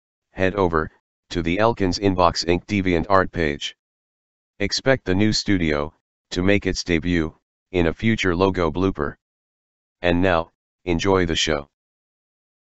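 A man speaks calmly and closely, in short bursts with pauses.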